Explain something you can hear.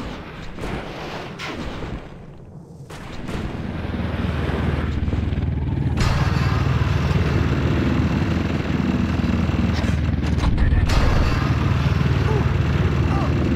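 A snowboard rushes and hisses over snow at high speed.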